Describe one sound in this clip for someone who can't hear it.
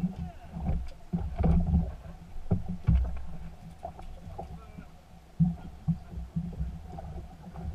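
A fishing reel clicks as a fisherman reels in.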